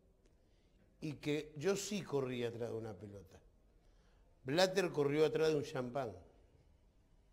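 An elderly man speaks calmly and close to a microphone, with pauses.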